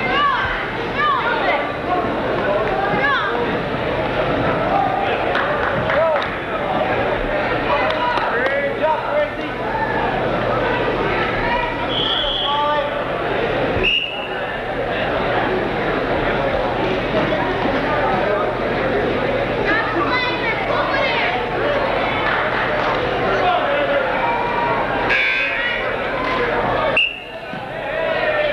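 A crowd of men and boys talks and shouts in a large echoing hall.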